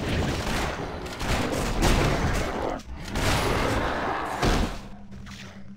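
Weapons clash and slash in a fast fight.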